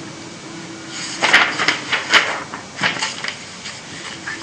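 Paper pages rustle and flap as they are turned.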